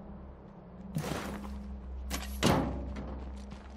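A vehicle's rear door opens and shuts.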